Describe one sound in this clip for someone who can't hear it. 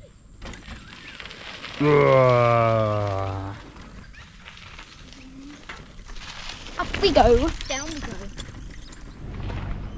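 Bicycle tyres roll and crunch over a dirt track.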